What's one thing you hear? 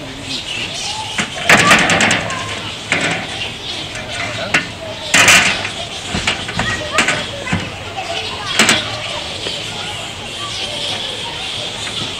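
A wooden board knocks and scrapes against a metal box.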